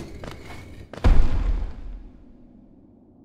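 A character dashes with a rushing whoosh.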